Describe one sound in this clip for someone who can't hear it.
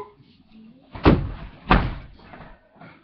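A body thumps down onto a mattress.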